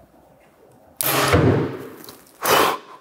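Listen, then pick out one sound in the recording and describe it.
A bowstring twangs sharply as an arrow is shot.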